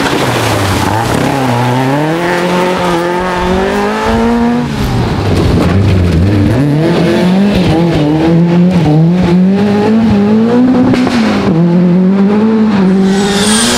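Tyres skid and crunch on loose gravel.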